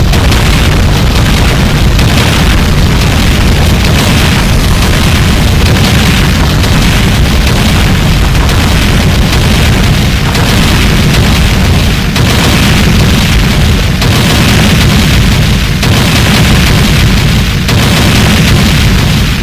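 Rapid game explosions and blasts burst over and over.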